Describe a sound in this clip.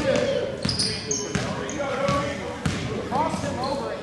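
A basketball bounces on the floor with dull thumps.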